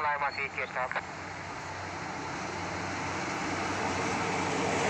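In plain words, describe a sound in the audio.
A train rumbles steadily louder as it approaches along the track.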